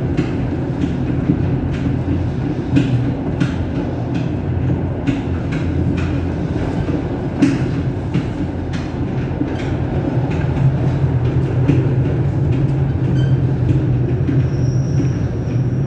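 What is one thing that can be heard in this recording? A train rumbles steadily along the track from inside the driver's cab.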